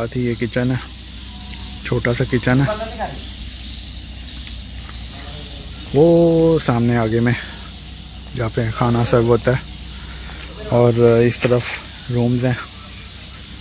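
A man speaks close by, calmly and in short bursts.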